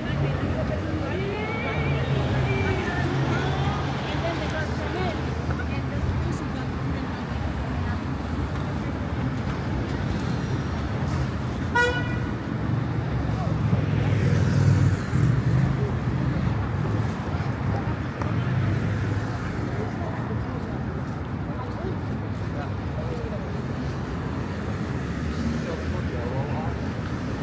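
Steady city traffic rumbles nearby outdoors.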